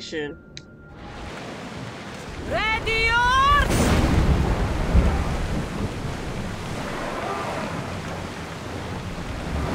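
Wind blows hard outdoors.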